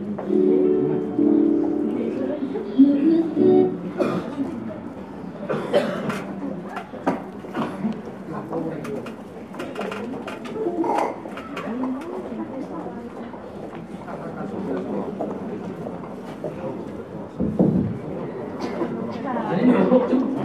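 A crowd of adults murmurs and chatters in a large echoing hall.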